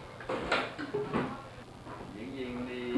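A man talks casually.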